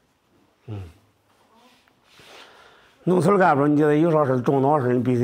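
A middle-aged man speaks calmly and closely.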